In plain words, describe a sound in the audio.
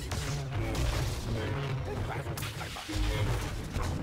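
Blasters fire rapid shots.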